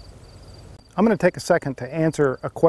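A man speaks calmly into a clip-on microphone.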